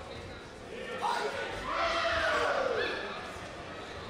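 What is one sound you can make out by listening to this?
A man shouts a sharp command loudly.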